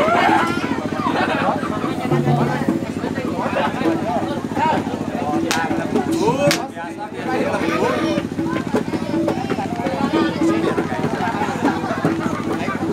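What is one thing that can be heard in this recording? A crowd of men shouts and chatters loudly outdoors.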